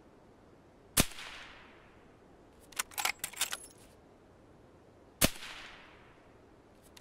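A rifle fires loudly, with the shot echoing away.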